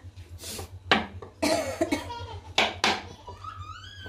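A knife scrapes on a chopping board.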